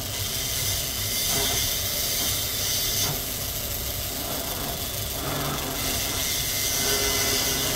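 A small rotary tool whirs steadily at high speed.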